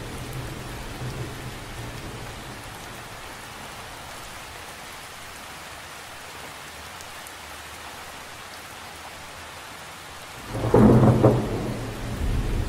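Rain patters steadily on the surface of a lake.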